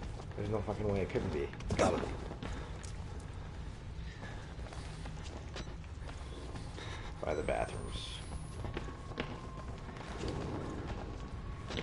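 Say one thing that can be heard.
A young man talks excitedly close to a microphone.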